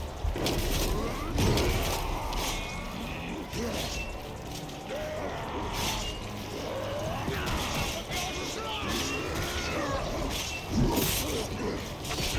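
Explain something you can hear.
Metal weapons clash and thud against shields in a melee fight.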